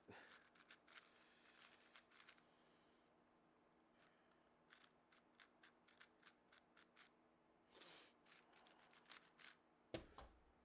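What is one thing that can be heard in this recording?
Plastic puzzle cube pieces click and clack as they are turned quickly.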